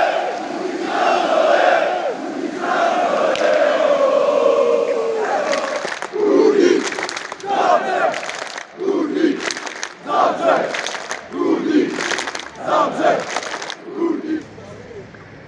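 A large crowd of men chants loudly outdoors.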